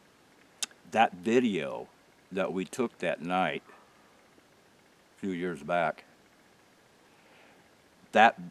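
An elderly man speaks calmly, close by, with pauses.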